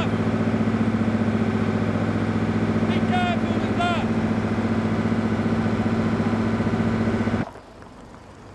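A large engine runs with a loud, steady drone.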